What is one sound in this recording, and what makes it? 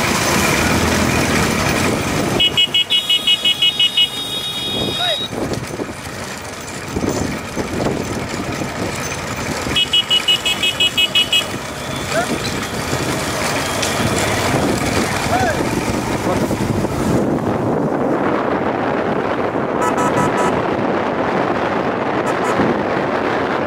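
Several motorcycle engines rumble close by.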